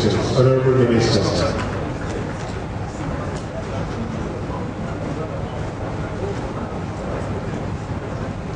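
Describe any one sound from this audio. A man speaks loudly through a microphone over loudspeakers.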